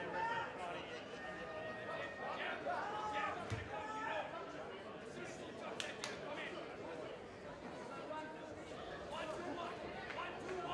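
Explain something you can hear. A ringside crowd shouts and cheers.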